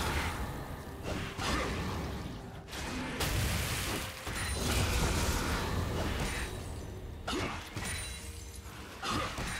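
Magic spells whoosh and crackle in a busy video game battle.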